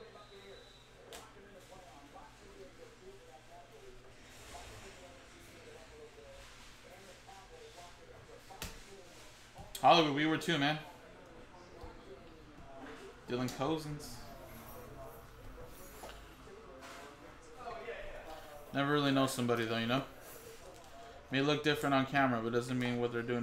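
Trading cards shuffle and slap softly.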